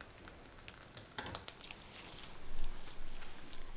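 A plastic sheet crinkles and peels away from a tray.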